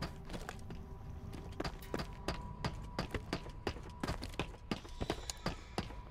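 Armoured footsteps clank on a hard floor.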